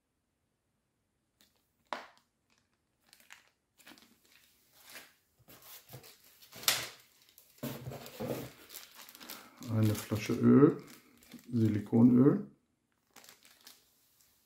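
Plastic packaging crinkles in someone's hands.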